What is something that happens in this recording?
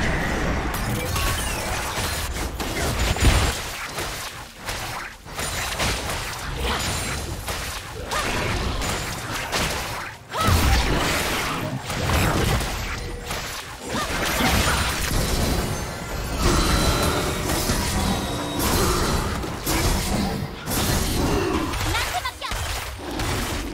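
Fantasy combat sound effects clash, whoosh and crackle in quick bursts.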